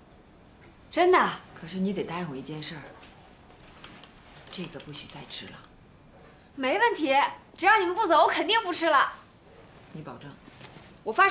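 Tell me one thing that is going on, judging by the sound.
A middle-aged woman speaks calmly, close by.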